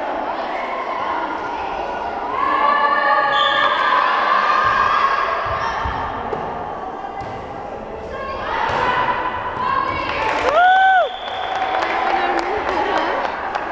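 A volleyball is struck with a hollow smack.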